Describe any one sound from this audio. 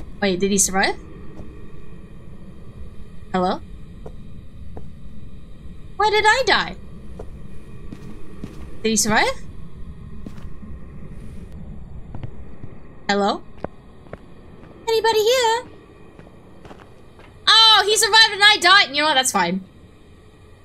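A young woman speaks with animation into a close microphone, in short bursts.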